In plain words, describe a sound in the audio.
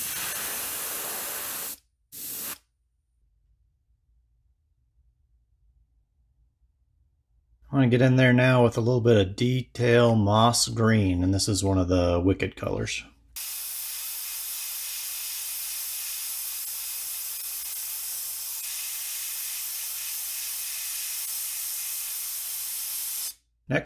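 An airbrush sprays with a steady hiss.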